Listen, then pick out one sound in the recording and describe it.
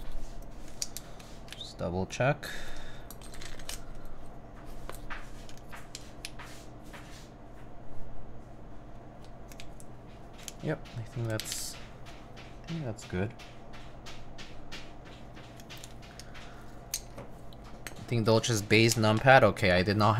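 Plastic keycaps click and clack as they are pulled and handled.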